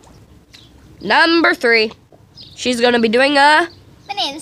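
A young girl talks cheerfully close by.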